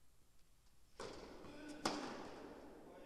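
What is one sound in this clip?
A tennis ball is struck by a racket with a sharp pop, in a large echoing hall.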